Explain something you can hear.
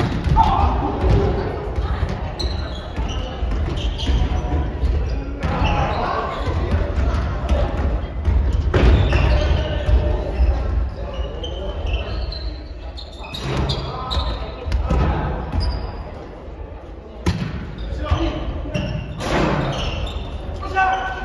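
Young men and women call out to each other in an echoing hall.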